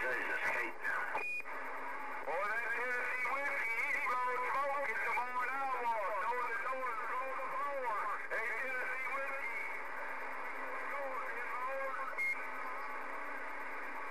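A radio receiver hisses and warbles with static through a small loudspeaker.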